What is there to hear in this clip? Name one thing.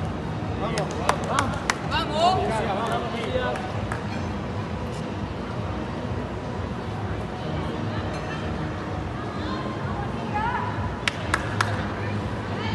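Gymnastics bars thump and rattle.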